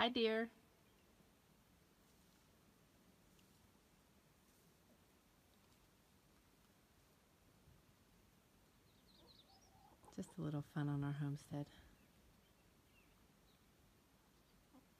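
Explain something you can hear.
A hen clucks softly nearby.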